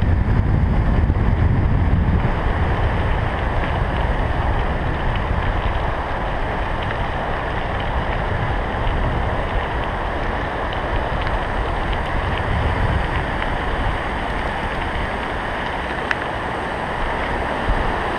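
Bicycle tyres crunch on a gravel path.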